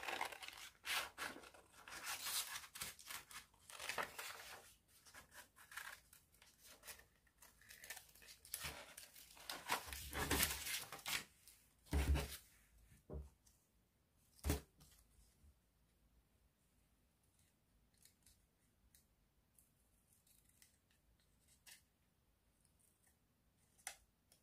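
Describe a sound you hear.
Scissors snip through paper with crisp cuts.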